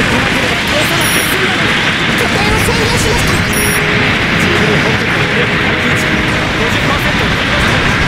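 Explosions boom in a video game battle.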